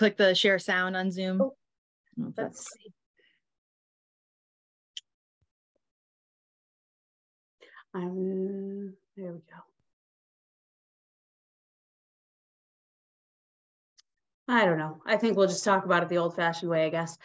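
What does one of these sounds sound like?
A woman speaks calmly through an online call microphone, pausing now and then.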